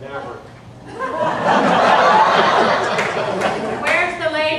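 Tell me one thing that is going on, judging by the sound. Women in a group laugh.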